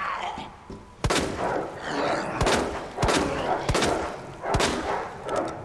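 A handgun fires several loud shots in a row.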